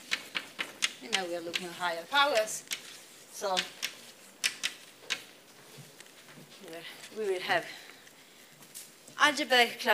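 A young woman speaks calmly in an echoing room.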